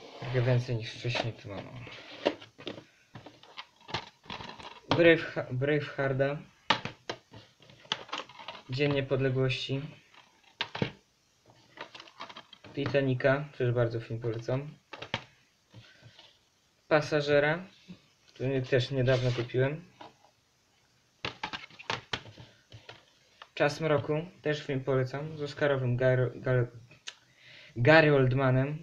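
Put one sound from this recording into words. Plastic cases clack and rattle as they are picked up and set down.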